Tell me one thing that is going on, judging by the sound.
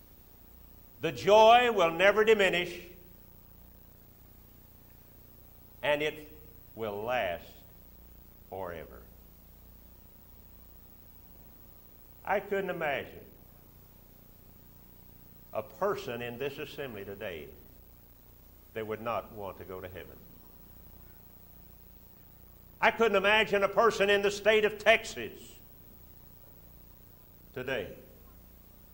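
An elderly man speaks slowly, with long pauses, through a microphone.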